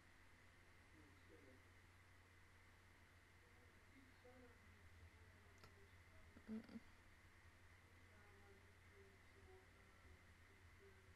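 A young woman speaks softly and briefly, close to a microphone.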